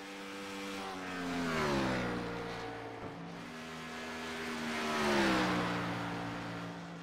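Race cars whoosh past one after another, their engine pitch dropping as each goes by.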